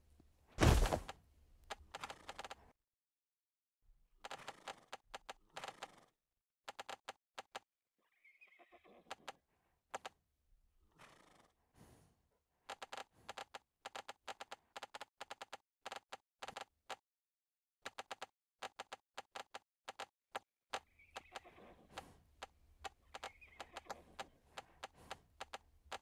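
Hooves clop quickly and steadily on a hard surface.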